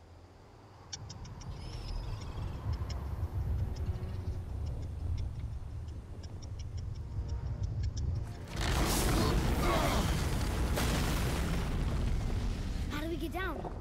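Strong wind roars and howls, growing louder.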